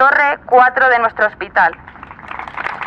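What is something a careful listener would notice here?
A young man shouts through a megaphone.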